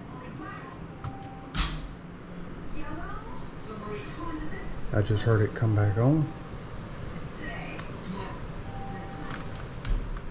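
A thermostat beeps as its buttons are pressed.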